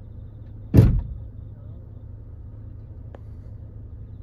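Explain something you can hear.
A car hood slams shut with a heavy thud.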